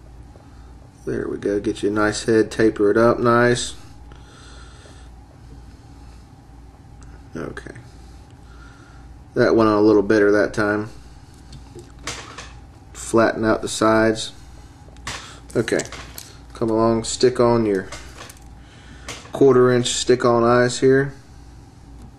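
A man speaks calmly and close by, explaining in short phrases with pauses.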